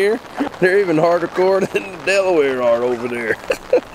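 A man speaks calmly and up close.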